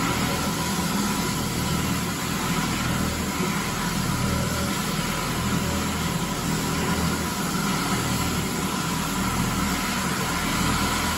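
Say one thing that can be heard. Scrubber brushes swish and scrub across a hard floor.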